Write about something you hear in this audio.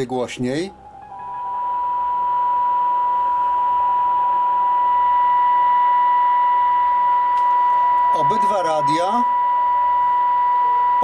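A radio hisses with static.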